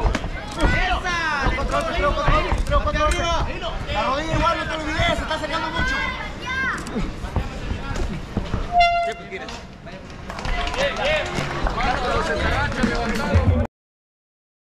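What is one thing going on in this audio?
A crowd of spectators shouts and cheers loudly.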